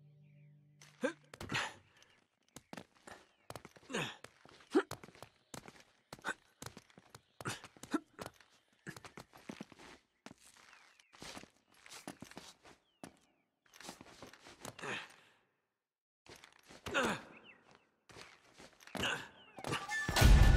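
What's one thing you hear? Hands grab and scrape against stone ledges during a climb.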